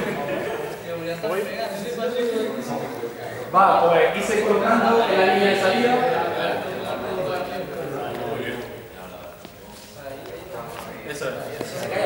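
A man gives instructions with animation.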